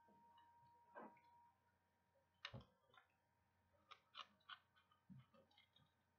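A plastic bottle crinkles and clicks in a hand.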